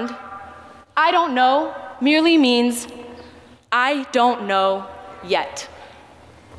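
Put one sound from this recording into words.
A young woman sings loudly into a microphone, heard through loudspeakers outdoors.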